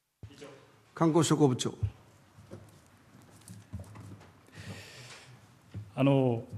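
A man calls out briefly from across the room.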